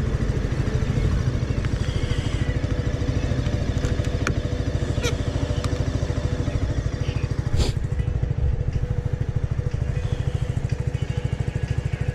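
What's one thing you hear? A motorcycle engine idles with a steady, low rapid throb.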